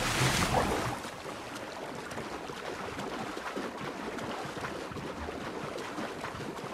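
Water splashes with swimming strokes.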